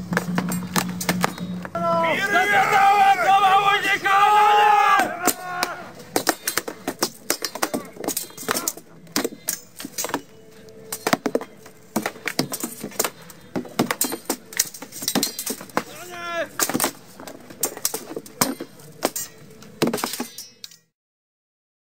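Swords and shields clash and knock repeatedly.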